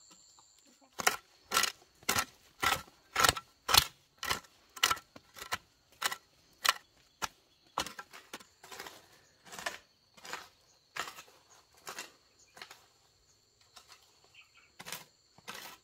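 A hoe strikes and scrapes dry soil in a steady rhythm.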